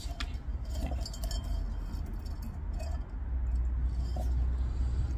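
Dry plant roots rustle and crackle against a clay pot.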